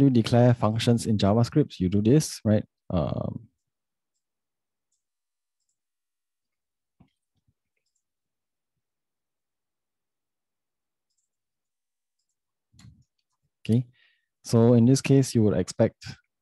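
A young man speaks calmly and close to a microphone, in short bursts with pauses.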